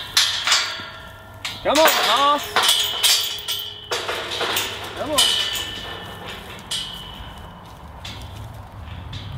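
A metal gate clanks and rattles, ringing sharply.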